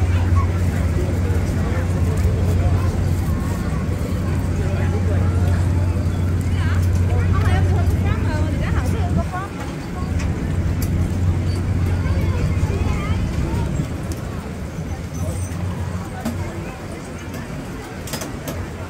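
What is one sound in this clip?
A crowd chatters in the open air.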